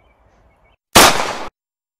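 A pistol fires a single loud shot outdoors.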